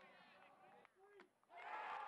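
A bat cracks against a ball.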